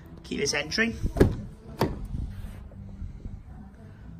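A car door latch clicks open.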